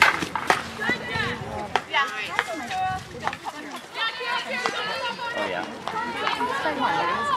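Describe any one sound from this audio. Hockey sticks clack sharply against a ball.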